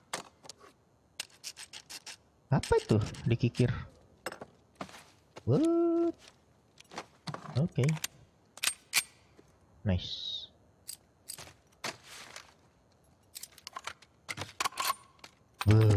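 Metal parts of a gun click and clack as they are handled.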